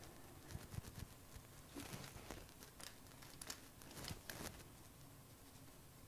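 A paint roller rolls over paper.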